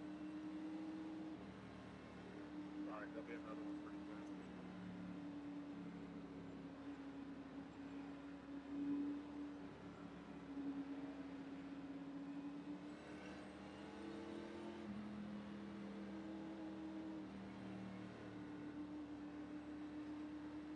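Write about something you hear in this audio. Other race car engines hum nearby.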